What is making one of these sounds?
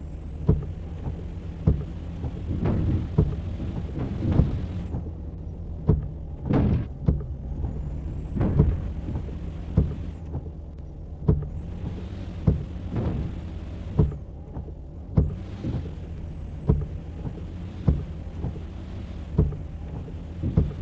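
A diesel semi-truck engine drones low as the truck drives.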